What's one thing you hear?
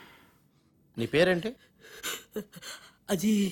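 A man speaks loudly with animation, close by.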